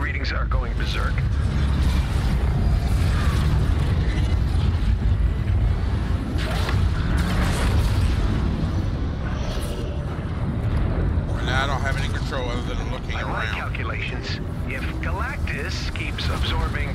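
Jetpack thrusters roar.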